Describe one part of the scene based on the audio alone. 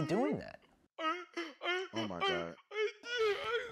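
A man groans close by.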